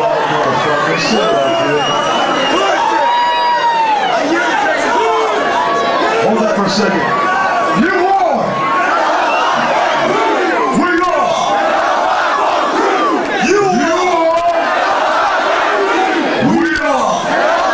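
A large crowd cheers and shouts loudly in a big echoing hall.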